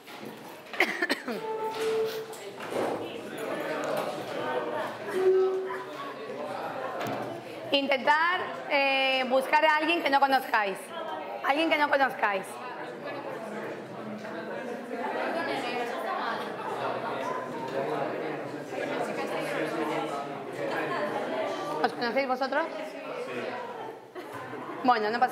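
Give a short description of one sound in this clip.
Many adults chatter and murmur at once in a room.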